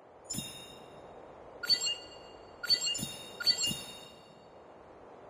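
A bright electronic chime rings out several times in quick succession.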